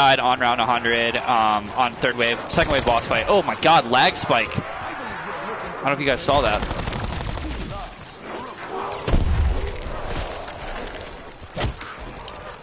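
Gunshots ring out in bursts.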